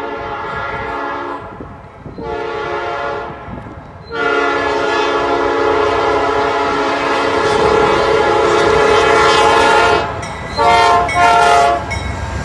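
A train horn blasts loudly in long repeated calls.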